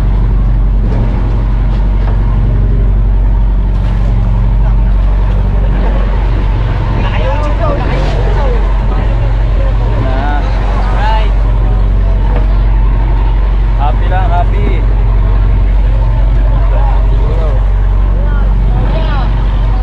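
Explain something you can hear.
A boat engine drones steadily and loudly.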